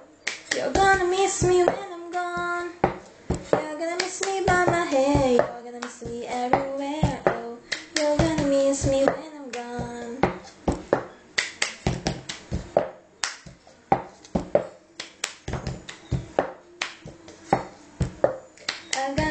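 A plastic cup taps and slides on a table in a quick rhythm.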